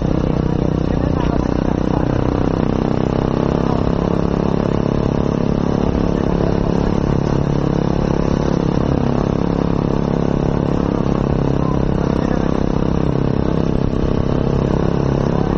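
A motorcycle engine hums steadily, rising and falling in pitch.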